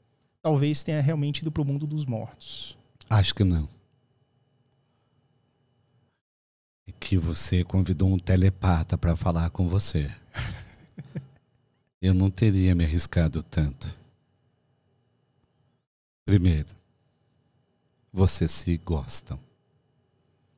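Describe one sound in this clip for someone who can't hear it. A middle-aged man speaks with animation, close to a microphone, in short bursts.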